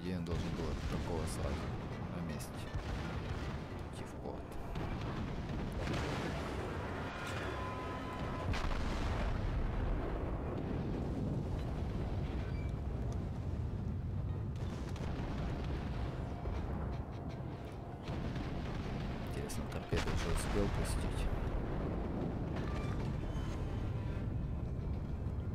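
Big naval guns boom in heavy, rumbling blasts.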